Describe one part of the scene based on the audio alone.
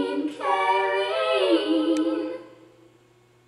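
A young girl sings out loudly and close by.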